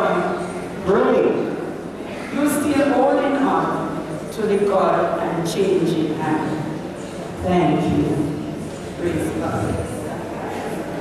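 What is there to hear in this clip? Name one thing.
A woman speaks with animation through a microphone and loudspeakers in an echoing hall.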